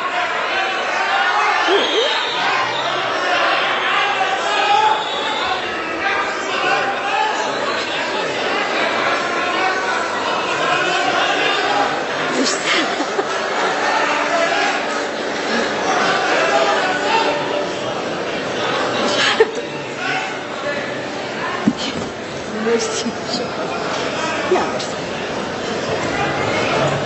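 An orchestra plays behind a singer.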